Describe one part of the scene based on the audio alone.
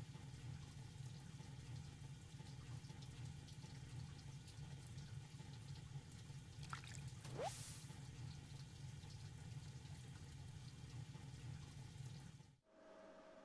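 Water in a steaming pool bubbles and hums steadily.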